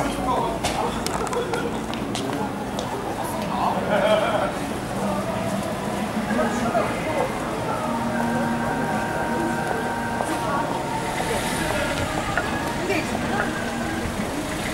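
Street noise with distant voices fills the air outdoors.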